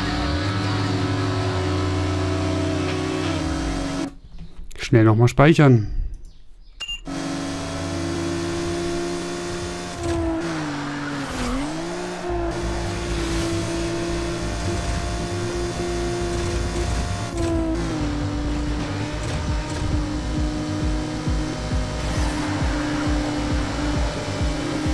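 A racing car engine roars at high speed, shifting pitch as it changes gear.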